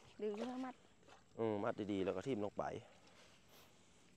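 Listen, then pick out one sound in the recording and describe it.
A net is lifted out of shallow water, dripping and splashing.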